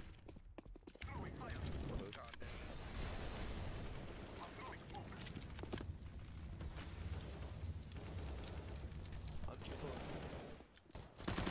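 Rapid gunfire rattles from a video game.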